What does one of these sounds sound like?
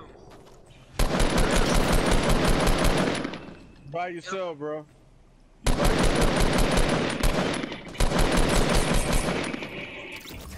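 Rapid automatic gunfire rattles in long, loud bursts.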